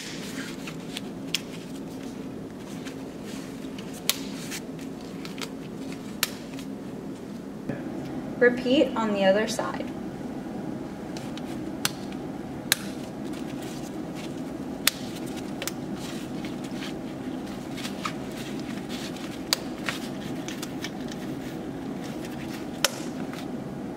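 Plastic buckles and clips click sharply now and then.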